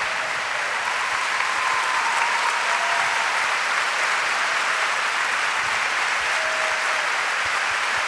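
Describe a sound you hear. A crowd cheers and whistles.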